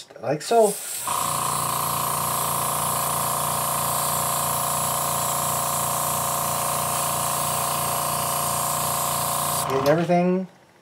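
An airbrush hisses steadily as it sprays.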